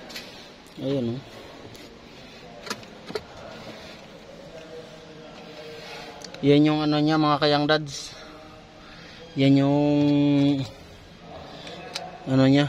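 Plastic parts click and rattle close by.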